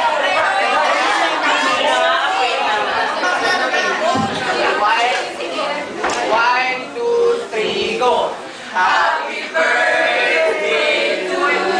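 A group of young men and women sing together nearby.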